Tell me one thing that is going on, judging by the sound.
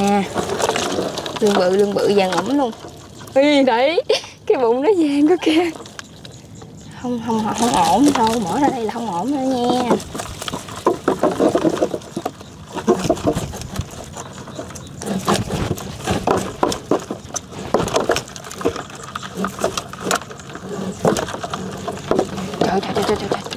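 Eels and crabs scrabble and slither in a plastic tub.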